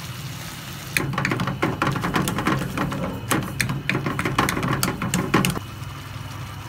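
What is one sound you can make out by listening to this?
A metal spoon stirs and scrapes against a pan.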